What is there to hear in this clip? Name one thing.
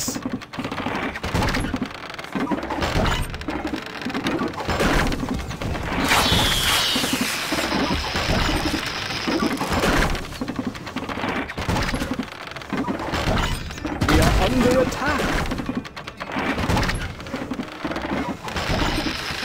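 Building work thuds and clatters as walls go up.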